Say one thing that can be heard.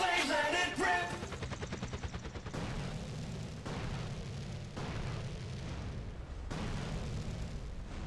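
A helicopter's rotor chops and thumps steadily close by.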